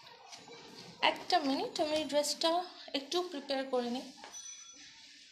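A young woman speaks with animation close by.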